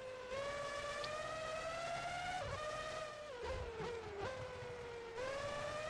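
A racing car engine whines at high revs, rising as it speeds up and dropping as the gears shift down.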